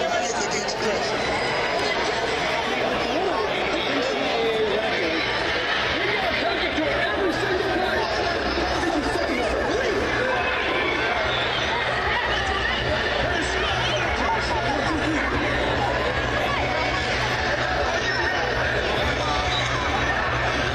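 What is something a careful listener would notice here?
A large stadium crowd chatters and cheers all around outdoors.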